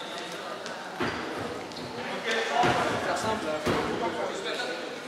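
Sports shoes squeak and thud on a hard floor.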